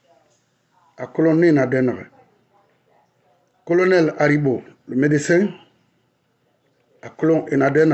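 A middle-aged man speaks earnestly and close to a microphone, in short bursts with pauses.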